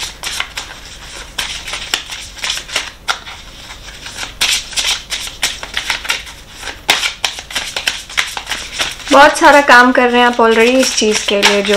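Playing cards riffle and flick as they are shuffled close by.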